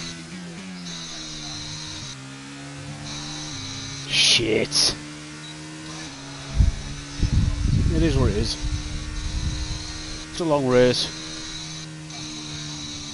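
A racing car engine whines steadily, dropping in pitch briefly with each upshift.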